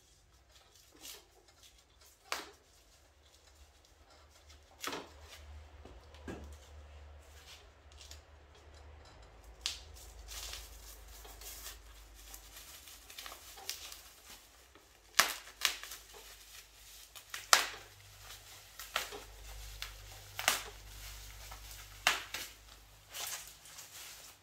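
Sharp clicks and knocks of plastic parts being handled.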